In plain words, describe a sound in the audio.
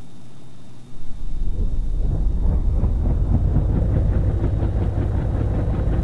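A helicopter engine roars and its rotor whirs steadily.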